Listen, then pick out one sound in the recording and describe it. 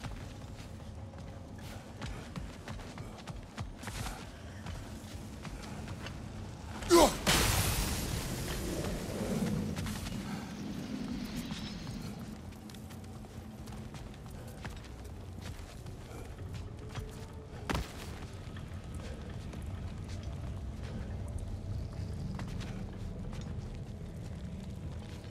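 Heavy footsteps crunch on stone.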